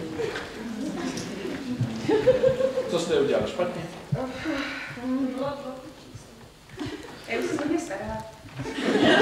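A young man speaks with animation in a hall.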